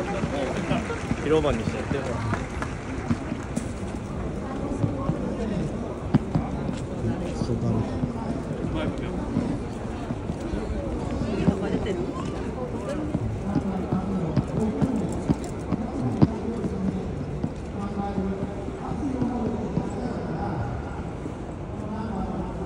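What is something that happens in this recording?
A busy crowd of men and women chatters all around outdoors.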